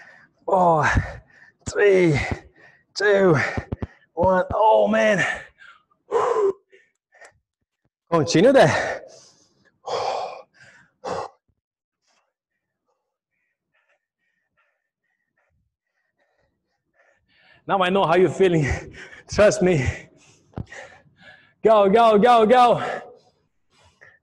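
A man speaks with energy into a microphone.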